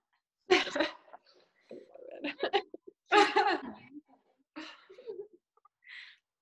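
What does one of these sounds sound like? Young women laugh together over an online call.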